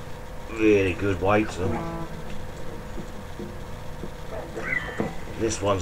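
An electric guitar's strings ring out briefly.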